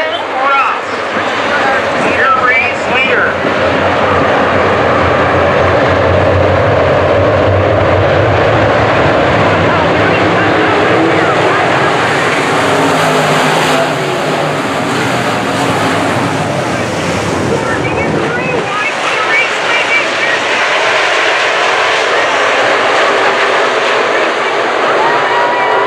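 Many race car engines roar loudly outdoors.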